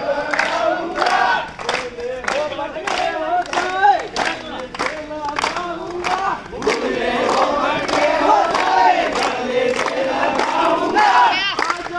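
A crowd of young men claps in a steady rhythm outdoors.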